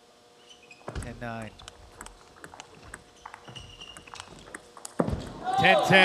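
A ball clicks back and forth on a table and paddles.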